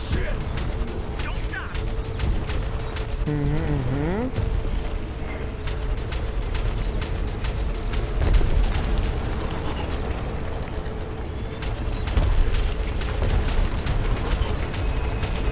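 A futuristic motorbike engine roars steadily at high speed.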